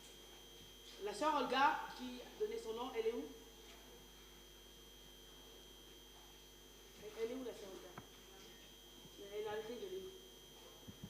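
A woman speaks with feeling into a microphone in a reverberant hall, in short bursts with pauses.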